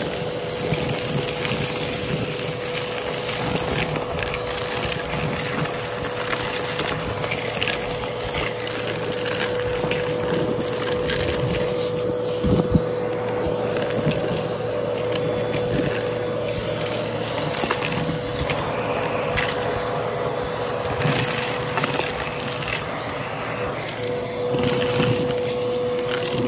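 Small bits of debris rattle and clatter as they get sucked up.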